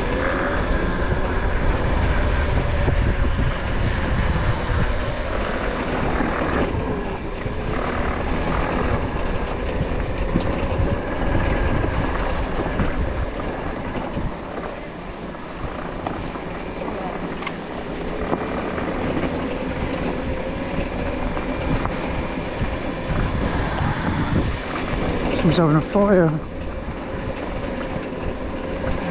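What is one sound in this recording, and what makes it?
A motorcycle engine hums steadily, rising and falling in pitch.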